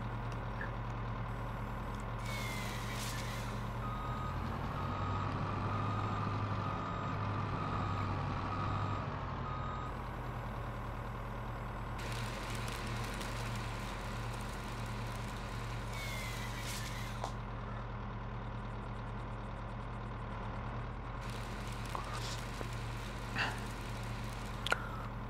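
A heavy machine's diesel engine rumbles steadily.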